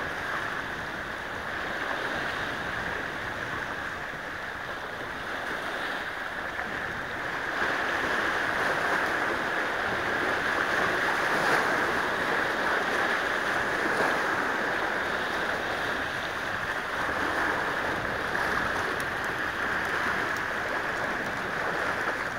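Small waves splash and wash against rocks on the shore.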